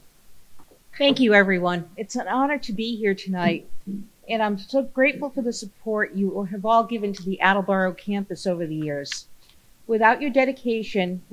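An older woman speaks calmly into a microphone.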